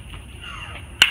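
A bat cracks sharply against a ball some distance away.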